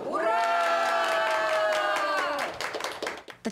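A group of men and women cheer together in a loud, drawn-out shout.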